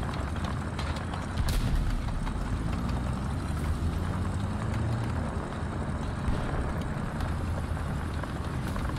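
Tank tracks clatter and squeak over the ground.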